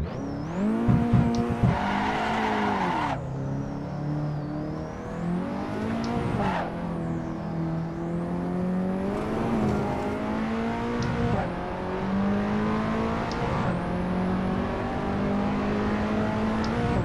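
A racing car engine roars, rising in pitch and dropping sharply with each gear change.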